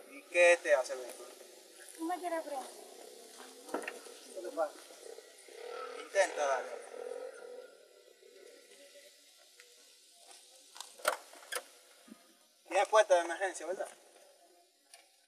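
Young men talk with each other nearby.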